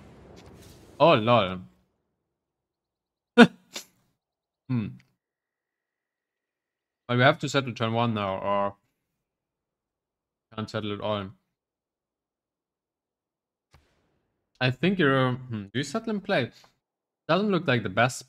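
A young man talks with animation into a close microphone, in bursts with pauses.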